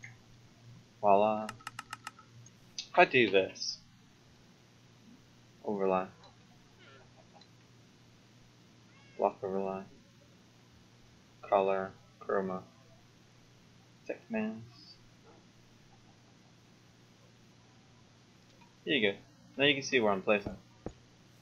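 A young man talks casually into a close microphone, in short bursts with pauses.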